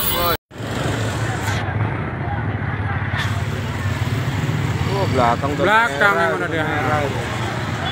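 A motorcycle engine idles and revs close by.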